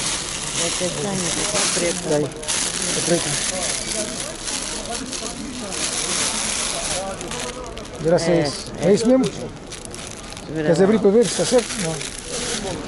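A woman talks nearby in a conversational tone.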